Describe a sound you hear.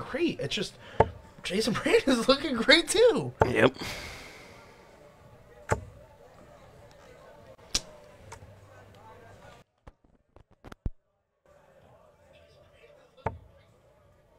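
Darts thud sharply into a dartboard, one after another.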